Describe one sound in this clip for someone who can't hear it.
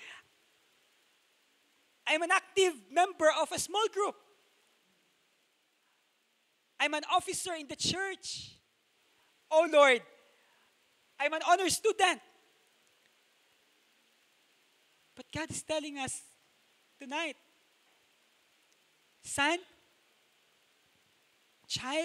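A young man speaks with animation into a microphone, heard through a loudspeaker, with pauses between phrases.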